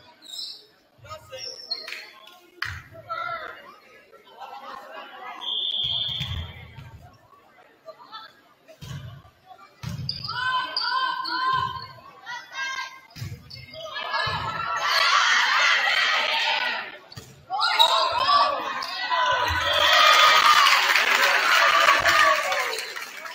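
A volleyball thumps as players hit it back and forth.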